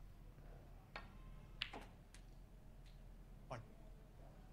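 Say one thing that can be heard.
A cue ball is struck with a sharp click.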